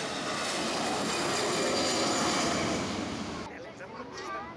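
A jet airliner's engines roar loudly.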